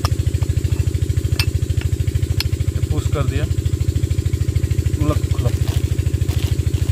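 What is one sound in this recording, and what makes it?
A metal tool scrapes and clicks against a metal piston.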